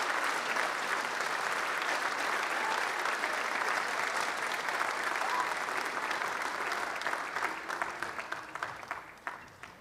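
An audience applauds loudly in a large hall, and the clapping thins out and fades.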